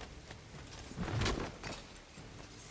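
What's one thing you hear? A heavy thud lands suddenly.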